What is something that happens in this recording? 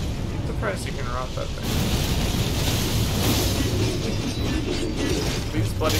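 Metal blades clash and scrape.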